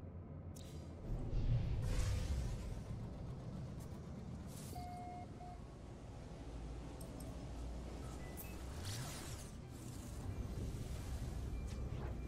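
A spaceship engine rumbles steadily.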